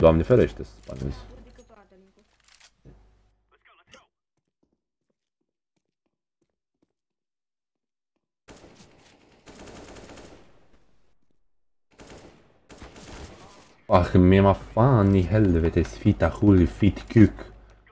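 A rifle clicks and rattles as it is handled.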